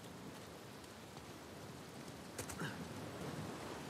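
A stream flows and babbles.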